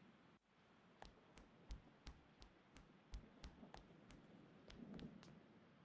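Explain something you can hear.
Footsteps tap along a hard floor.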